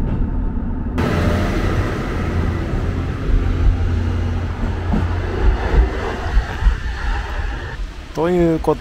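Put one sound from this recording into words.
A train rolls past a platform with a rushing whoosh.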